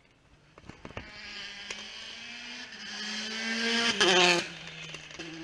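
A rally car engine revs hard as the car approaches and speeds past close by.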